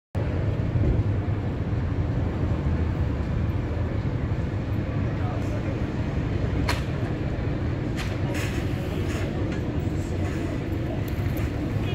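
A bus engine rumbles as the bus drives slowly closer.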